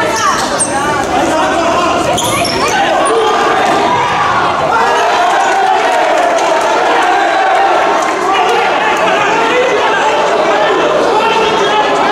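A crowd chants and sings loudly in a large echoing hall.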